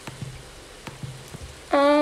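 A hoe strikes the soil.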